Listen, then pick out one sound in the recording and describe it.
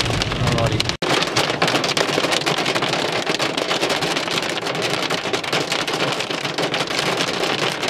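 Hail and rain hiss down steadily outdoors.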